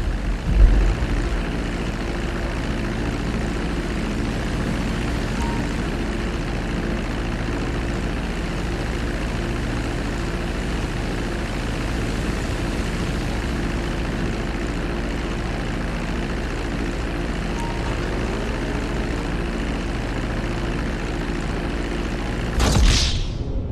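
A propeller plane's engines drone steadily and loudly.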